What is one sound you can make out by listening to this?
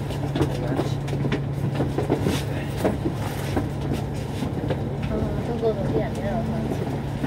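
Traffic rolls by on the road.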